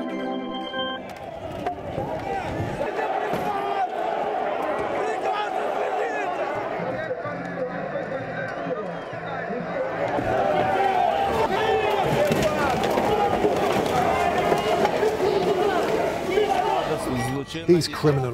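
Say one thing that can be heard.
A crowd shouts and chants outdoors.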